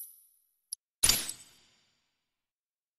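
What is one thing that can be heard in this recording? A deeper whooshing chime rings out once as an item is equipped.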